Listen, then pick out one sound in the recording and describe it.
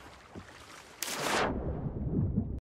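A body plunges into water with a loud splash and muffled underwater rumbling.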